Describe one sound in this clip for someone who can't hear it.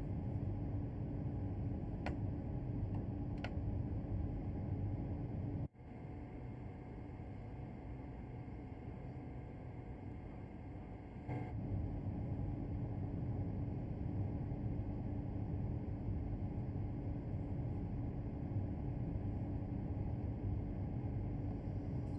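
A train's motor hums and rumbles steadily.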